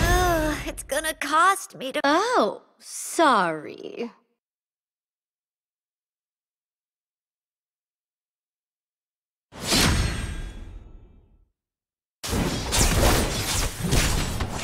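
Fighting sound effects clash and crash in quick bursts.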